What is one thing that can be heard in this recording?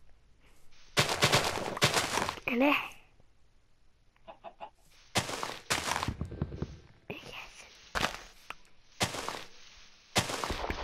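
Leaves rustle and crunch as they are broken.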